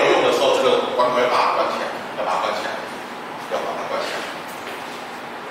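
A man speaks calmly and clearly in a slightly echoing room.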